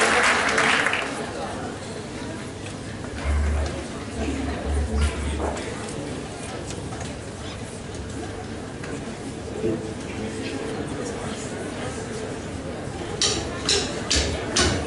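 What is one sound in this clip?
Girls sing into microphones.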